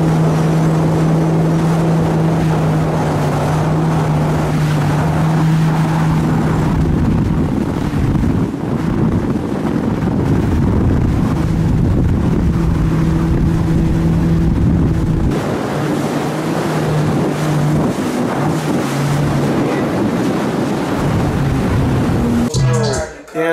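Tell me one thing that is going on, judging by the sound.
A personal watercraft engine drones steadily.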